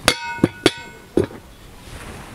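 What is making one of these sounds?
A metal pot clangs and rings as it is set down on stone.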